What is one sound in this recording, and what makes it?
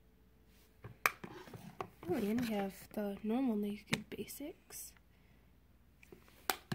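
A plastic case taps and clicks against a wooden table.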